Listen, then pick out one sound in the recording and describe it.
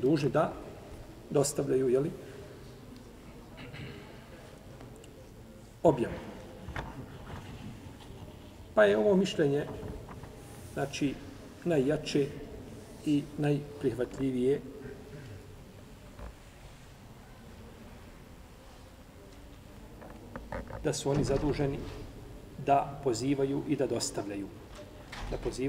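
A man reads aloud slowly and calmly into a microphone, with pauses.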